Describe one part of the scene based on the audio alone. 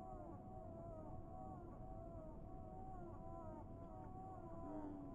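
Water laps gently against a boat.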